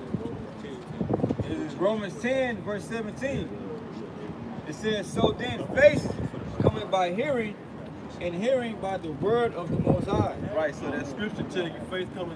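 A second young man recites rhythmically, close by.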